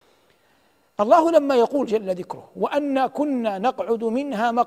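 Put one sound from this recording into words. A man speaks calmly and clearly into a microphone, in a steady preaching tone.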